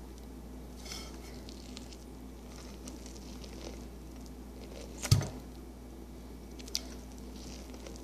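A toddler chews and bites corn on the cob with wet crunching sounds.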